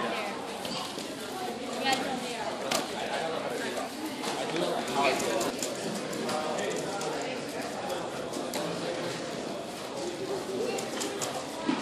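Plastic puzzle cubes click and rattle as they are turned quickly.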